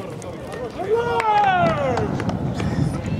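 Men shout and cheer outdoors.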